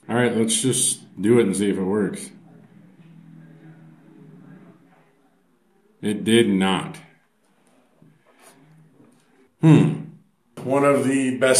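A young man talks close by, with animation.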